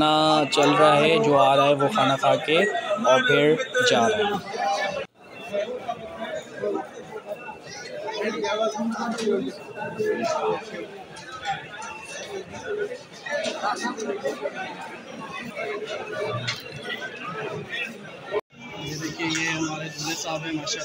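Many men chatter and talk at once in a large echoing hall.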